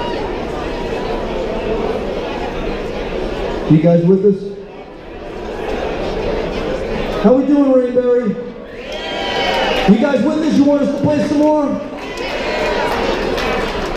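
An electric guitar plays.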